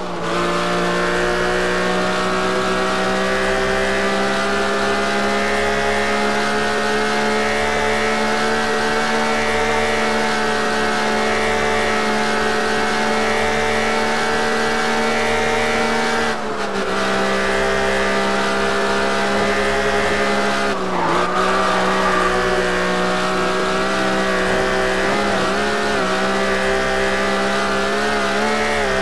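A car engine roars steadily at high speed, briefly dropping in pitch as the gears shift.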